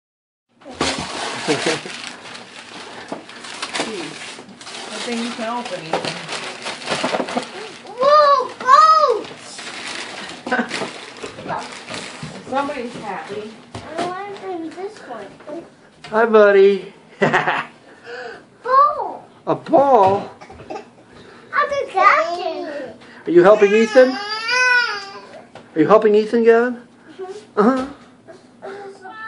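Wrapping paper rustles and tears as a small boy unwraps a present.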